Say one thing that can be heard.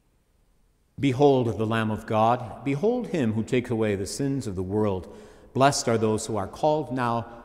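An elderly man chants in a steady, sung voice through a microphone in an echoing hall.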